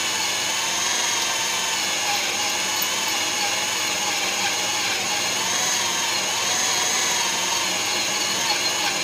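A milling machine whines steadily as its cutter grinds through metal.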